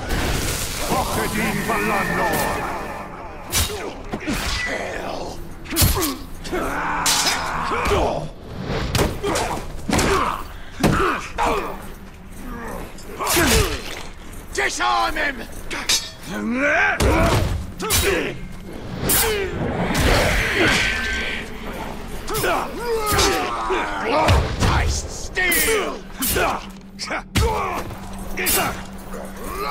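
Swords clash and strike in quick, sharp blows.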